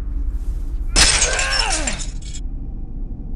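A sledgehammer smashes hard against a wooden door.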